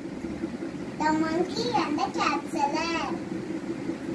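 A young girl speaks close by in a high, lively voice.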